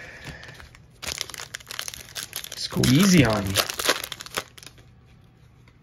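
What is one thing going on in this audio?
A foil wrapper crinkles and tears as it is ripped open.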